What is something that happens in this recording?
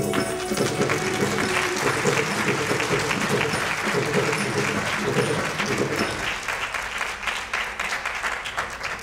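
Musicians play traditional instruments through loudspeakers in a large echoing hall.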